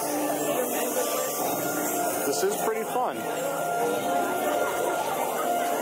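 A large crowd of men and women chatters all around.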